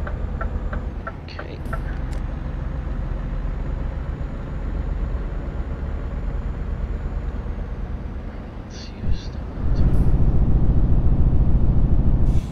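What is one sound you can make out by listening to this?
A truck engine rumbles steadily while driving on a highway.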